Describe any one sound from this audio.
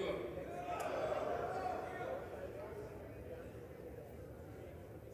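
A large crowd murmurs and talks in a big echoing hall, fading slightly.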